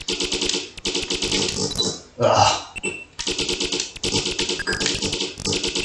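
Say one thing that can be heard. Rapid electronic laser zaps buzz from a retro video game.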